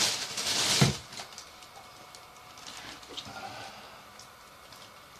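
A small plastic bag crinkles softly.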